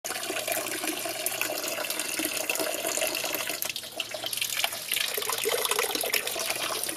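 Water splashes and trickles steadily into a fountain basin, close by.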